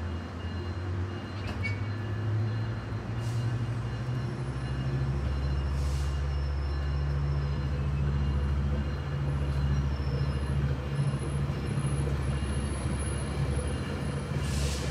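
A train rolls along the tracks, getting louder as it gathers speed.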